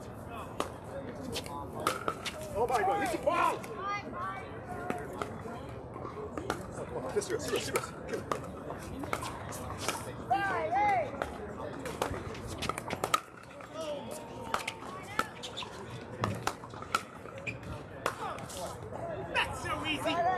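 Paddles strike a ball with sharp hollow pops.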